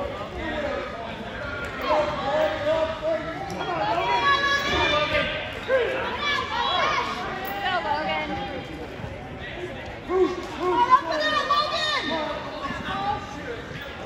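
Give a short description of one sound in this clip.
Wrestlers thud and scuff on a mat.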